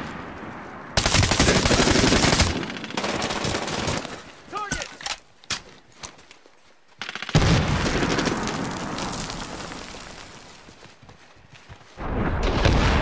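A sniper rifle fires loud single shots.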